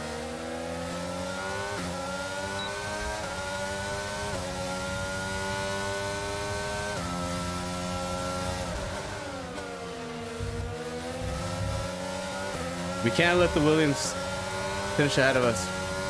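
A racing car engine whines at high revs, rising and dropping sharply with each gear change.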